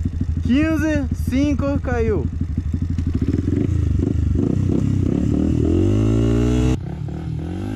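A dirt bike engine revs in sharp bursts close by, then pulls steadily.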